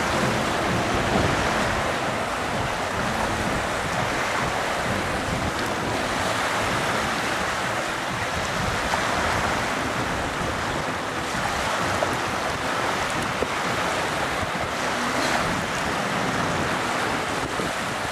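Small waves lap and splash against the shore.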